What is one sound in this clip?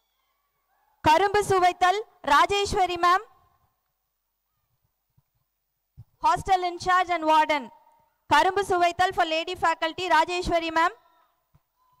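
A group of men and women sings loudly through loudspeakers outdoors, in short phrases with pauses.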